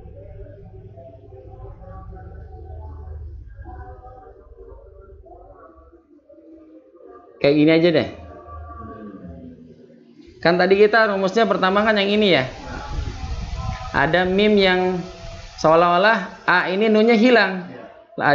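A man speaks close to a microphone, explaining at a steady pace.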